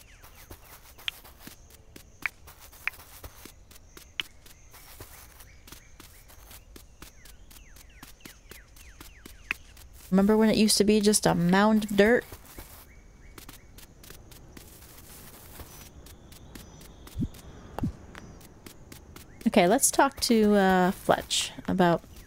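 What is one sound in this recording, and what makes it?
Light footsteps patter quickly over soft ground.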